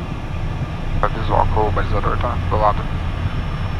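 A man speaks briefly through a headset microphone.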